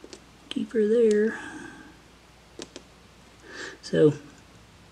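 Small metal parts click together as they are handled.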